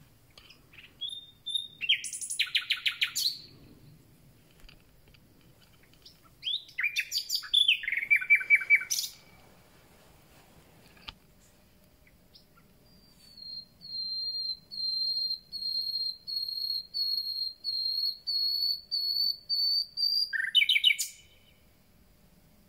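A small songbird sings close by in loud, rapid bursts of trills and rattling notes, with pauses between phrases.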